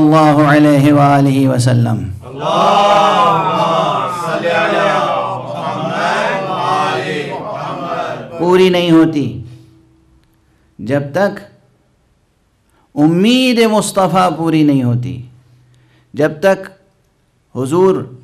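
A middle-aged man speaks with feeling into a microphone, pausing between phrases.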